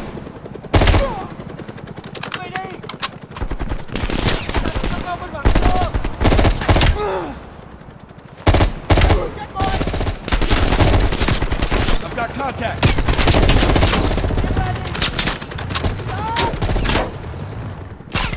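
Rifle shots fire in quick, loud bursts.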